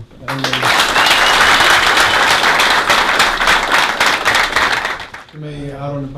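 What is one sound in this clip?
A crowd claps and cheers loudly in a large room.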